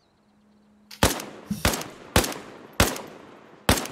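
Rifle shots ring out sharply several times.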